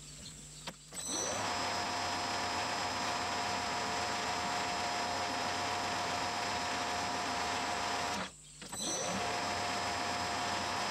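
A metal lathe spins up and runs with a loud, steady whirring whine.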